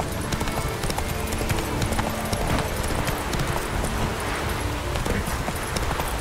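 A horse gallops with rapid hoofbeats on a dirt path.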